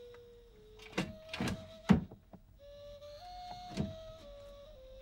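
A wooden drawer slides open with a knock.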